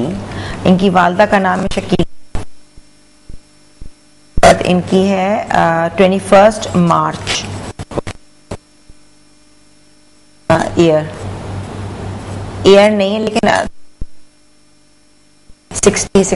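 A young woman speaks calmly into a close microphone, pausing between phrases.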